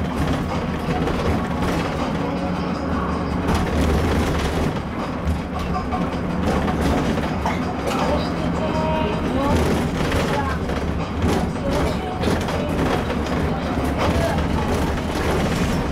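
Rattles and creaks come from the bus as it drives over the road.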